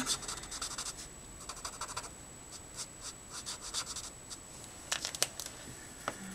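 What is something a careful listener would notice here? A marker squeaks and scratches across paper close by.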